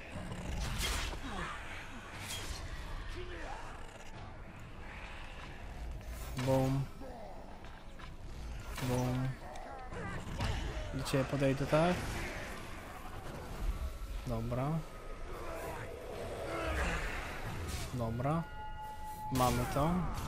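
Swords clash and strike with sharp metallic blows.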